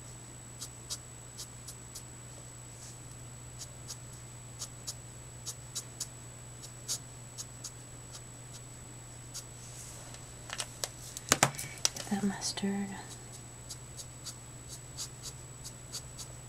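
A marker tip taps and scratches lightly on paper.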